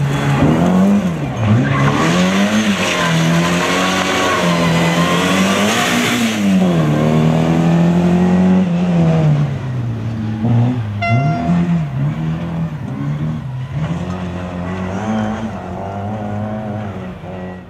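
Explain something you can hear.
Tyres skid and spray loose dirt.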